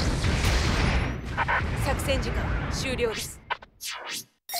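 Heavy gunfire and explosions rumble through a battle.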